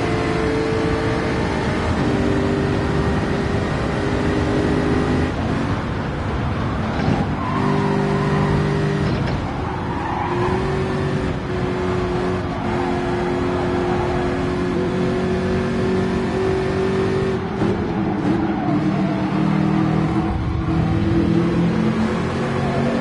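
A racing car engine roars and shifts gears at high speed.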